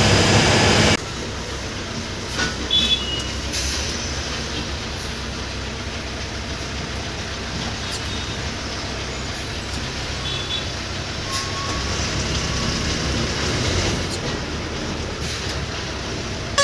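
An engine idles steadily at low volume.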